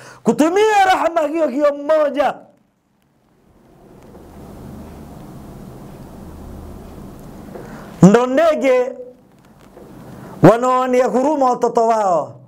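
A man speaks with emphasis into a microphone, close by, with pauses between phrases.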